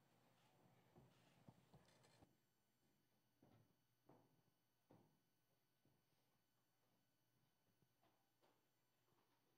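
Chairs and feet thump softly as people get up and leave.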